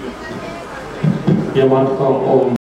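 A man speaks nearby outdoors.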